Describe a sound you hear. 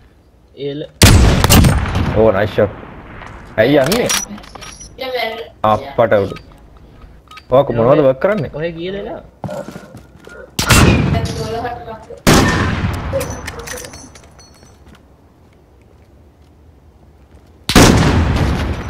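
A sniper rifle fires loud single shots that echo briefly.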